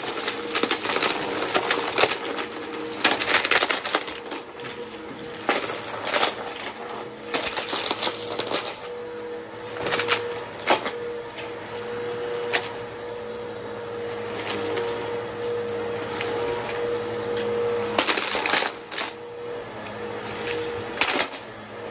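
A vacuum cleaner hums steadily as it runs over a carpet.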